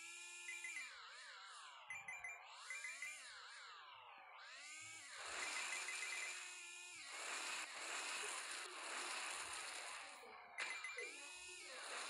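Video game coin pickups chime in quick bursts.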